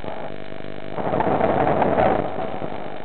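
Air bubbles gurgle and rush loudly underwater.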